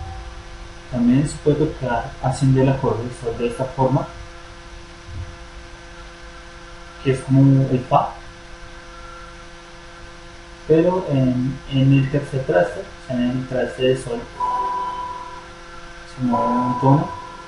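A young man talks close by in bursts.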